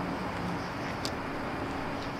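Footsteps walk on pavement close by.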